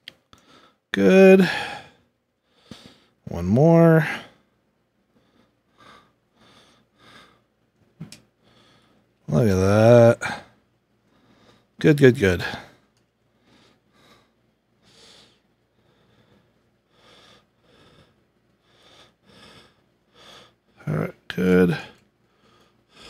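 A middle-aged man talks calmly through a headset microphone.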